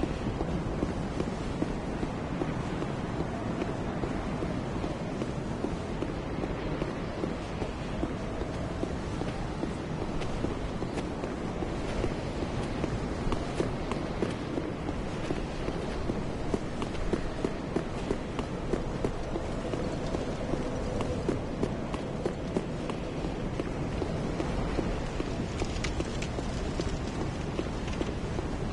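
Armoured footsteps thud quickly on stone.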